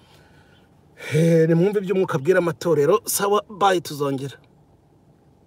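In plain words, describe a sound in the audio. A man speaks calmly close to the microphone.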